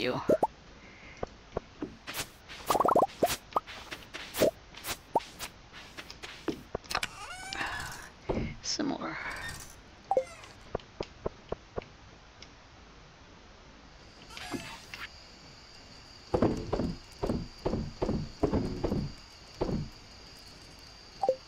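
Short game sound effects pop and click as items are picked up and moved.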